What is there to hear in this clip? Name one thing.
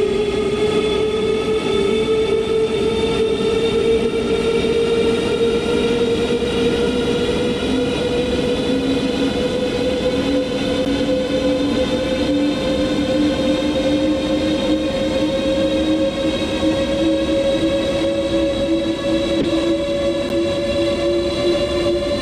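Train wheels rumble steadily on the rails.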